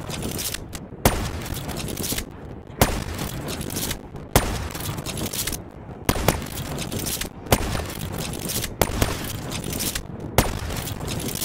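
A rifle fires loud single shots every second or two.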